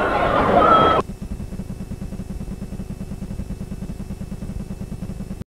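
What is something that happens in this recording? Tape static buzzes with a steady low hum.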